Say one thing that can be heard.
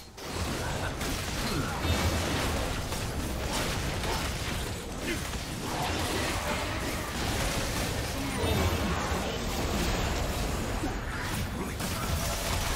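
Weapons clash and strike in quick bursts.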